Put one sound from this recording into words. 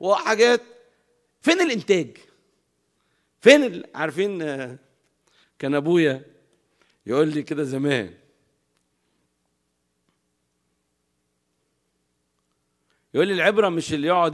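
A middle-aged man speaks with animation into a microphone, in bursts with pauses.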